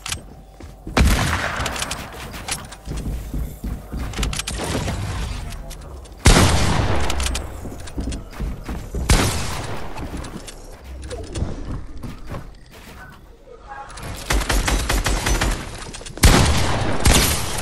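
Wooden building pieces clatter and thud into place.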